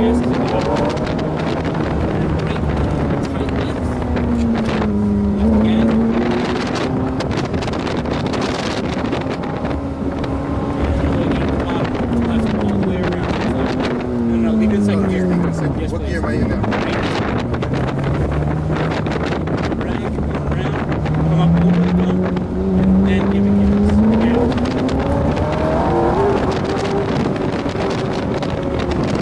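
A car engine revs up and down loudly as the car accelerates and slows.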